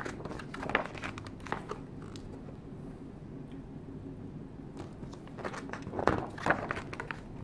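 Pages of a book rustle as they are turned by hand.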